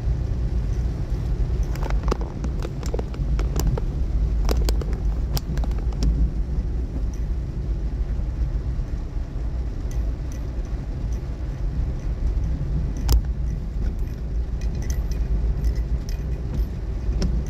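Raindrops tap on a windshield.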